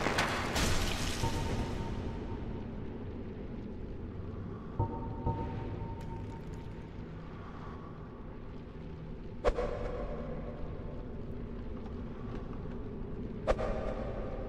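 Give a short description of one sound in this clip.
Armored footsteps clank on a stone floor.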